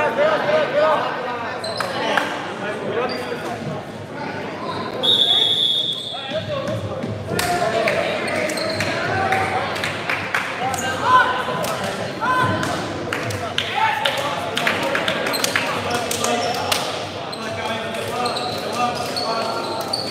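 Players slap hands as they pass each other in a line.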